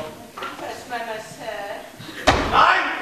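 A man speaks clearly from a stage in a large hall.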